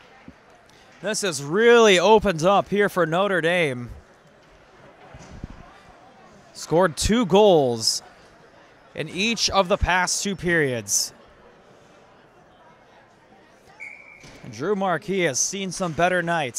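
Spectators shout and cheer in a large echoing rink.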